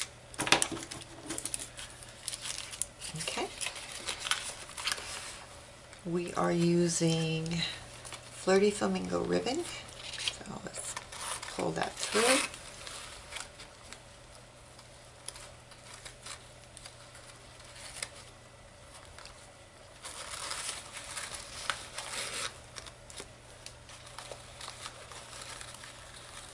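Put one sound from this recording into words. A cardstock box rustles and taps as hands fold and handle it.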